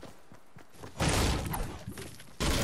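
A pickaxe strikes a metal wall with a clang.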